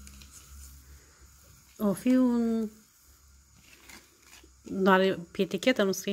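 A cloth bag rustles as a drawstring is pulled.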